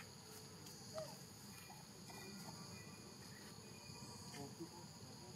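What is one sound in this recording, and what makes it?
A baby monkey squeaks faintly.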